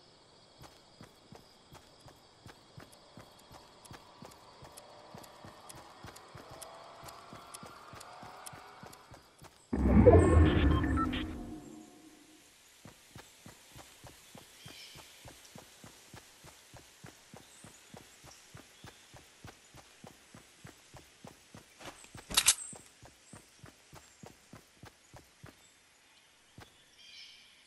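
Footsteps thud quickly and steadily on grass.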